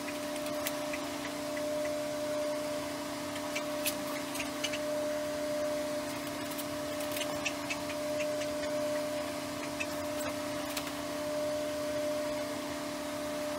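Liquid pours into a plastic container.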